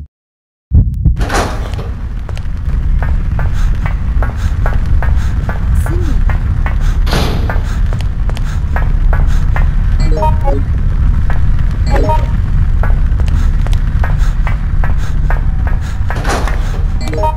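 Footsteps thud quickly on a hard metal floor.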